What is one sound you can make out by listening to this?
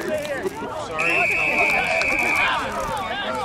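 A referee blows a sharp, steady whistle blast.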